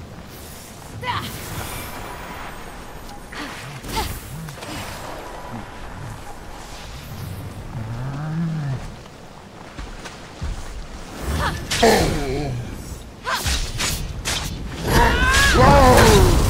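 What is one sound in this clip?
Magic blasts whoosh and crackle.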